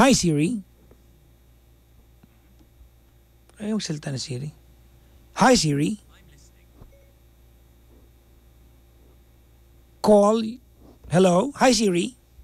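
A man speaks in short, lively bursts close to a microphone, with pauses between them.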